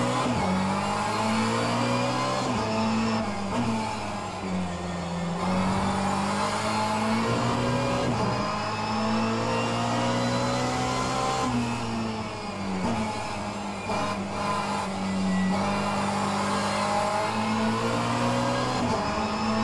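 A racing car engine roars, revving up and dropping back through gear changes.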